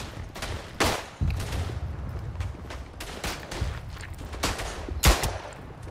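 Sharp pistol shots crack now and then.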